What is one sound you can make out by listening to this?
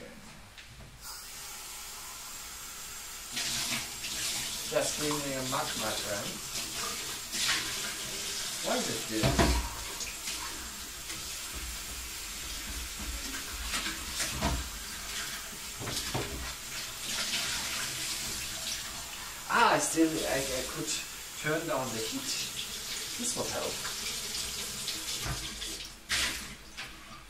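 Liquid bubbles and sizzles in a hot pan.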